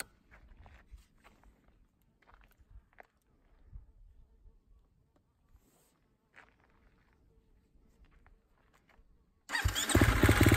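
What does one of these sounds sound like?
Small clicks and knocks come from handling a motorbike's controls.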